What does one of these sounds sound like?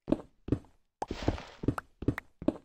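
Blocks break apart with a crumbling burst.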